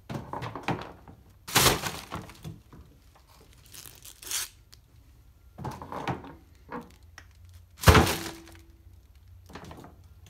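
A plastic bin bag rustles and crinkles.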